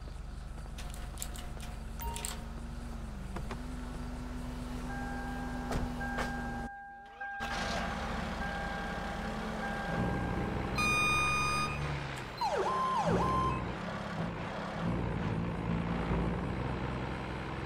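A truck engine rumbles and idles.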